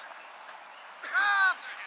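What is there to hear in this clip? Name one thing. A young man shouts loudly from across an open field.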